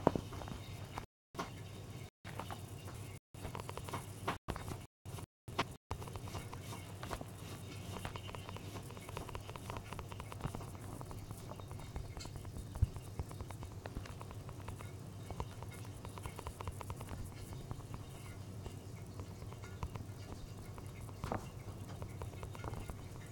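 Quick footsteps patter on a hard surface.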